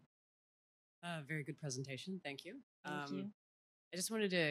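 A young woman speaks calmly into a microphone, heard through loudspeakers.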